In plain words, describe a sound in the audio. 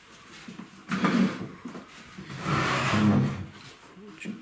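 A wooden bench scrapes across a wooden floor.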